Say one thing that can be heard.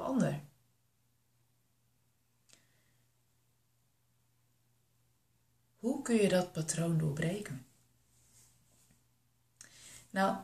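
A young woman speaks calmly and close to a microphone, with pauses.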